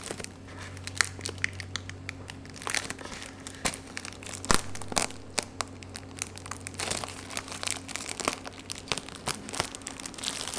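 Plastic wrap crinkles and crackles as hands peel it off a cardboard box.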